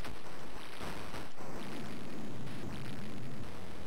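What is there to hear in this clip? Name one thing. A building crumbles and collapses with a rumbling crash.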